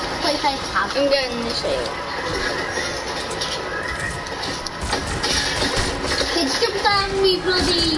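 A boy talks with animation into a microphone, close up.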